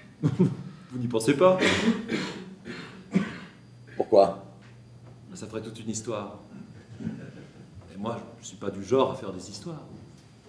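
A man speaks with animation in a large, reverberant room.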